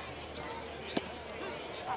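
A baseball smacks into a catcher's leather mitt.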